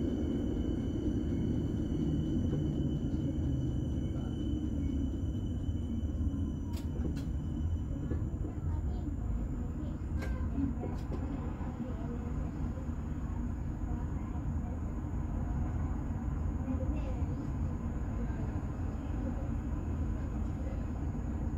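A tram rumbles along its rails with a steady low roar.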